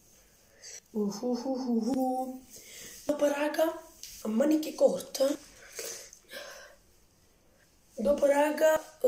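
A young boy speaks close by with animation.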